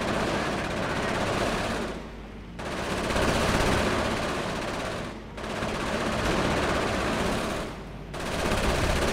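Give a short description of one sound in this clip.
Gunfire rattles in a battle.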